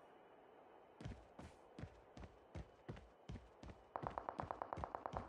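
Footsteps thud quickly on dirt.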